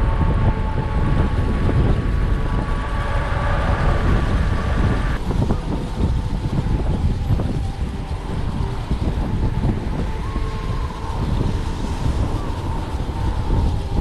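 Wind rushes and buffets loudly against a microphone.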